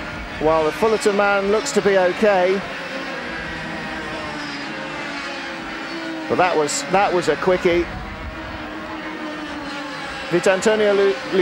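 Kart engines buzz and whine as karts race past.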